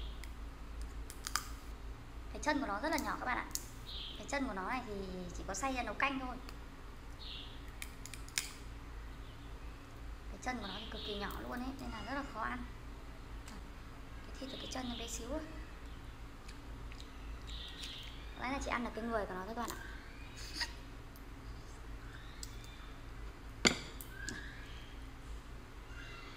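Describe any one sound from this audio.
Crab shells crack and snap between fingers.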